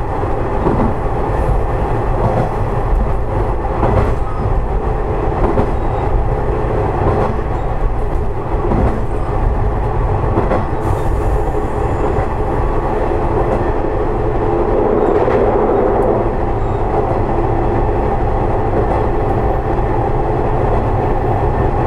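Train wheels click over rail joints.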